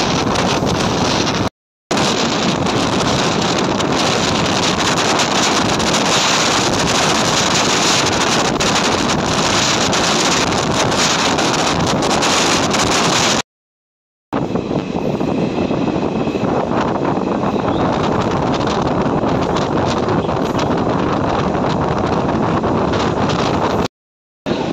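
A train rumbles and clatters along the rails at speed.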